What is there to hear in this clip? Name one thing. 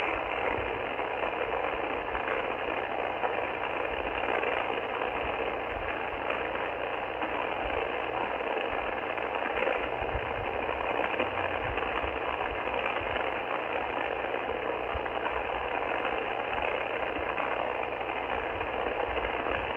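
A radio receiver hisses with steady, rushing static from its small loudspeaker.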